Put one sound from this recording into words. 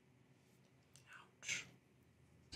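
A woman speaks briefly and casually into a nearby microphone.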